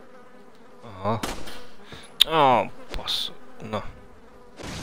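A wooden barrel is slashed and smashes apart with a loud splintering crack.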